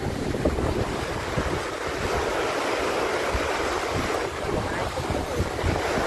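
People splash while wading through shallow water.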